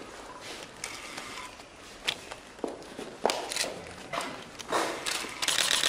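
Footsteps tap on a wooden floor in an echoing hall.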